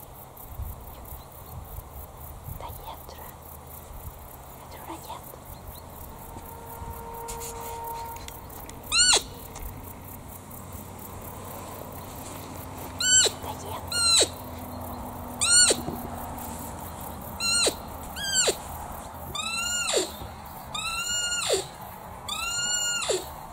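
Wind blows softly across an open field.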